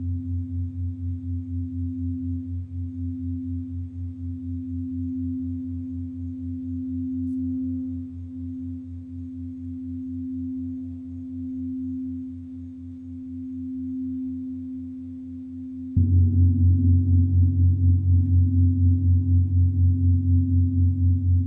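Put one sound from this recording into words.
A rubbed singing bowl hums steadily with a fast, even throb.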